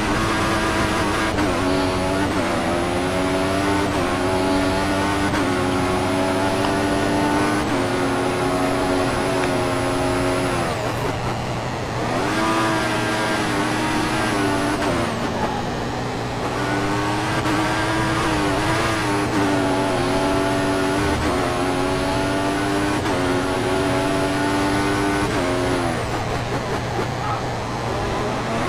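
A racing car engine screams at high revs, shifting up through the gears.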